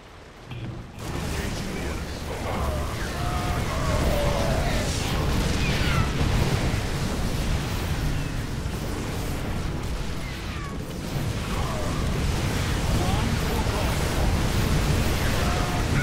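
Explosions boom in a video game battle.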